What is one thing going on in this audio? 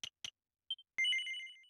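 A bright chime rings as a skill unlocks.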